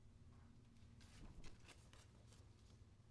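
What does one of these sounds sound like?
Paper rustles and crinkles nearby.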